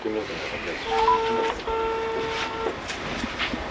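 A phone gives out a steady electronic tone.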